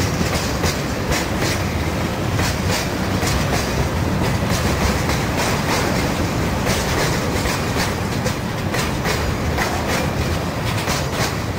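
A long freight train rumbles steadily past on the rails.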